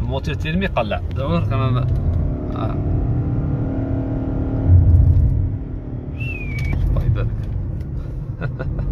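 A car engine hums low and steadily while driving.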